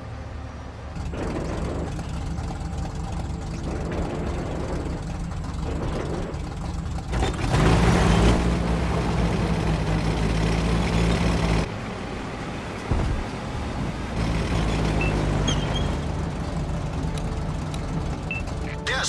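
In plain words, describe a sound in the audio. A tank engine rumbles and roars as it drives.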